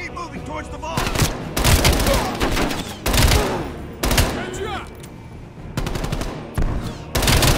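Bursts of rapid automatic gunfire ring out close by.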